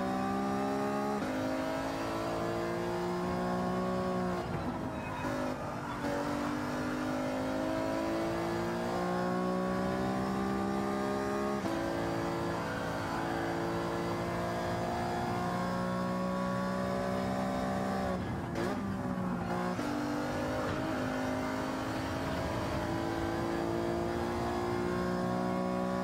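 A racing car engine roars, its pitch rising through the gears and dropping on braking.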